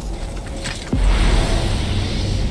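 A fire roars and hisses nearby.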